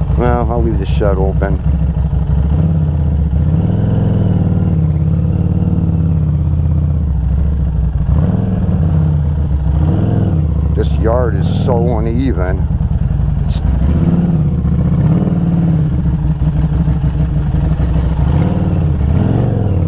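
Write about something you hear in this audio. A motorcycle engine rumbles close by, its pitch rising and falling as it rolls along.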